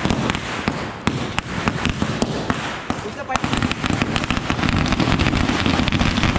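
Firecrackers pop and bang in rapid bursts outdoors.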